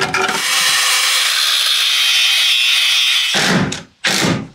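An angle grinder grinds metal with a high whine.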